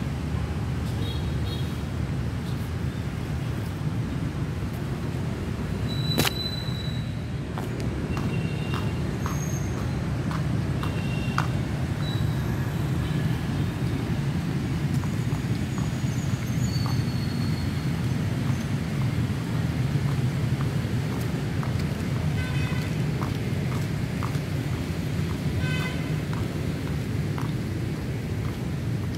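Rain falls steadily on wet pavement outdoors.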